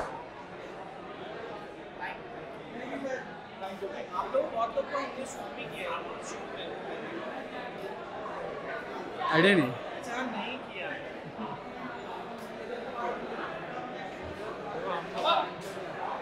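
A crowd of men and women chatter and call out nearby.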